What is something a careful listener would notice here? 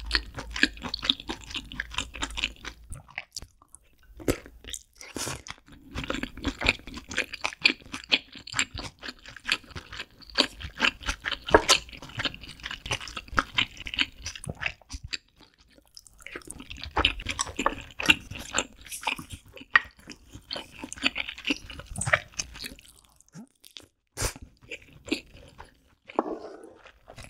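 A young woman chews food loudly and wetly close to a microphone.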